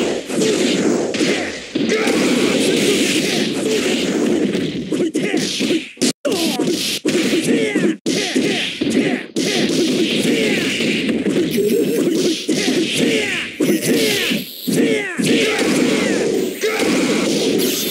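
An energy blast whooshes loudly.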